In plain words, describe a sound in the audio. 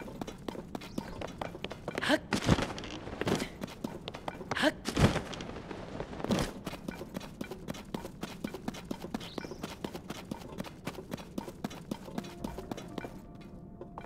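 Quick footsteps patter over the ground.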